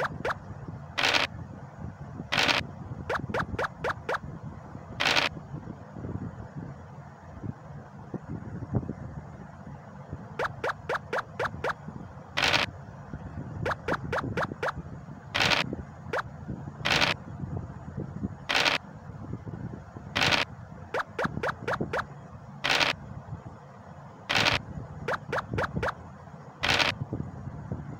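A game's dice rattle as they roll.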